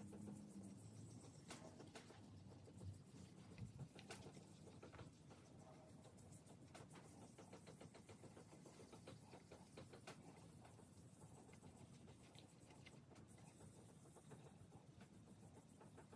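A sponge rubs and scrubs steadily on a smooth hard surface.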